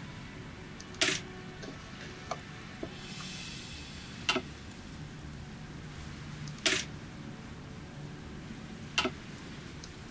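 Sharp interface clicks sound now and then as menus open and close.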